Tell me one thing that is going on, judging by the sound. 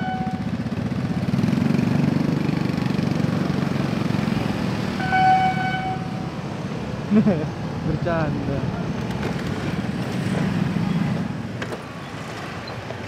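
Several motorbikes rev and drive off.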